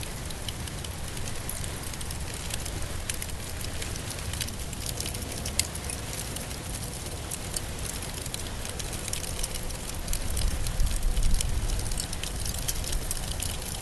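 A campfire crackles and pops steadily.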